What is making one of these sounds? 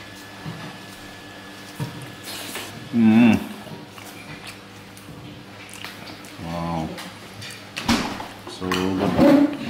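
A spoon scrapes and clinks against a plate.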